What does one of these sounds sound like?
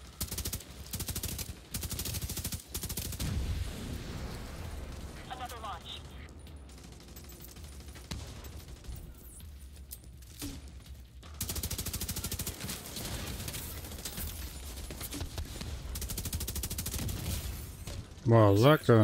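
Rapid rifle gunfire rattles in bursts.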